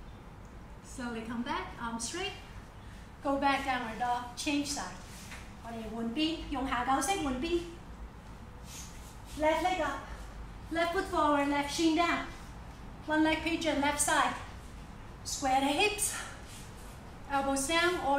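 A young woman speaks calmly and clearly close by, as if instructing.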